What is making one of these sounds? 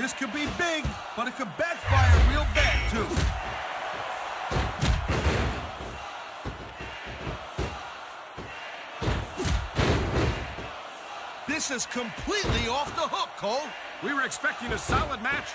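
Bodies slam onto a wrestling ring mat with heavy thuds.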